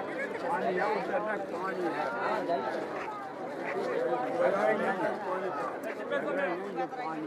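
A crowd of men and women chatters close by.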